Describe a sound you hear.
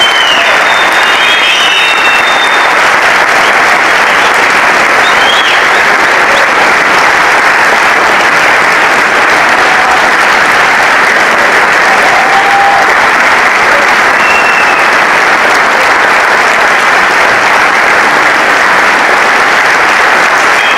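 A large audience applauds loudly in an echoing concert hall.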